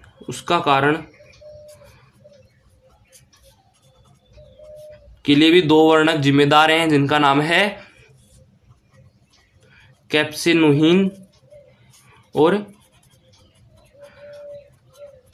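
A felt-tip marker scratches and squeaks on paper.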